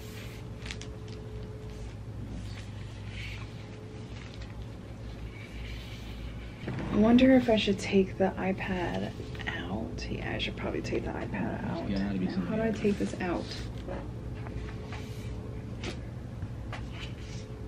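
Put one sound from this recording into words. Papers rustle and slide as they are handled.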